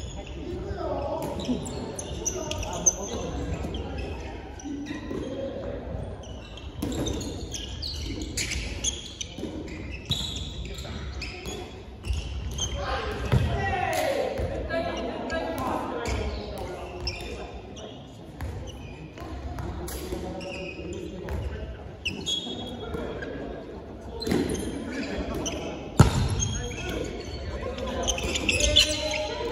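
Young men shout and call out to one another in a large echoing hall.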